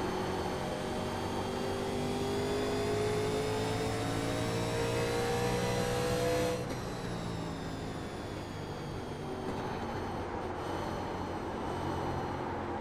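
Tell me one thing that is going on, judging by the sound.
A race car engine roars at high revs, its pitch rising steadily and then dropping as the driver lifts off.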